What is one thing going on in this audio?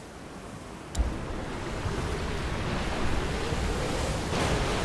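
Sea waves wash against rocks.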